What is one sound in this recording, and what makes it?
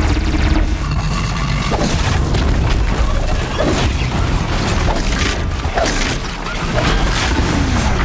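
A robot machine clanks and roars in a fight.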